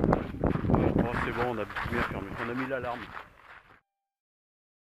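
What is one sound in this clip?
An elderly man speaks calmly, close up.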